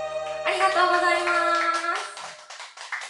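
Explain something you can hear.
A young woman sings loudly through a microphone.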